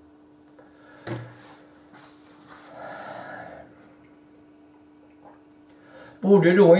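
An elderly man speaks calmly and close into a microphone, with pauses.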